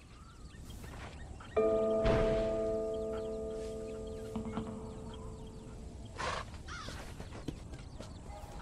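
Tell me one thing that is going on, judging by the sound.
A horse's hooves thud on a dirt track at a walk.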